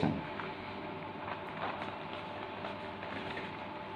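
A sheet of paper rustles as it is turned.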